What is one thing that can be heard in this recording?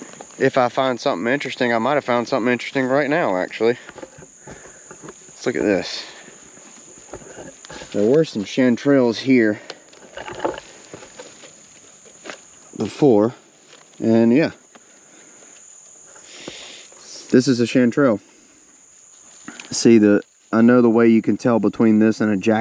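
A man talks calmly and close by.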